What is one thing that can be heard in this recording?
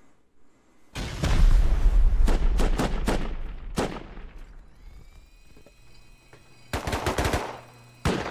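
Heavy gunfire roars in loud bursts.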